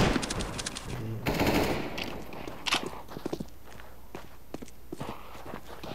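Footsteps tap on stone in a video game.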